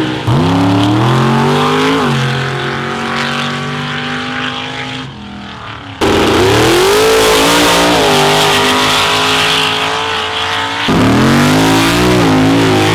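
A truck engine roars loudly at full throttle, rising in pitch as it revs.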